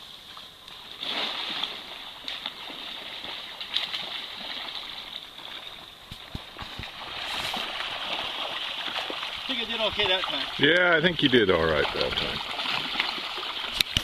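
A river rushes and gurgles over stones close by.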